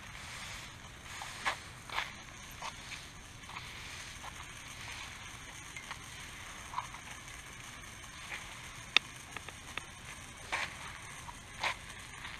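A push broom scrapes and swishes across paving stones outdoors.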